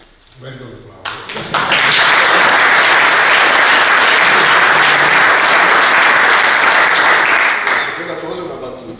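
A group of people applaud loudly.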